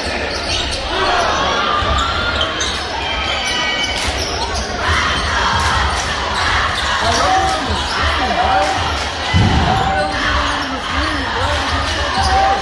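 A crowd cheers and murmurs in a large echoing gym.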